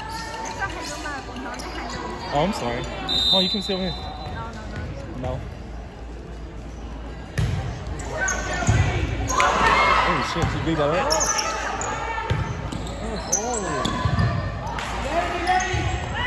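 Young women players call out to each other during a volleyball rally.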